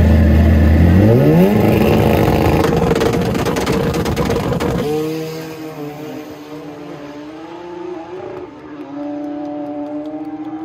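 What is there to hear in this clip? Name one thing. A drag racing motorcycle engine roars with rising pitch as it launches, then fades into the distance.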